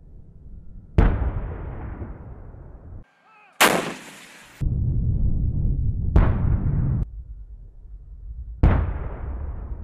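A heavy cannon fires with loud booms that echo away.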